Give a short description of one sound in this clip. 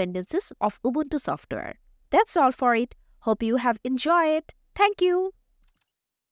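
A young woman speaks clearly and brightly.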